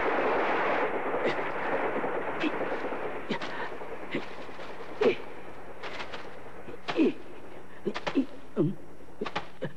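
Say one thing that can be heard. A pick strikes a coal face in sharp knocks.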